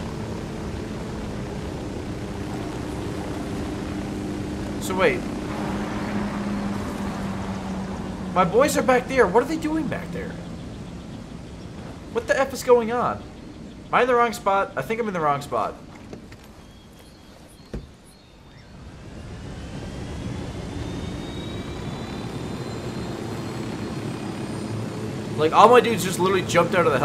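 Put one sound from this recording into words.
A helicopter engine hums and whirs steadily.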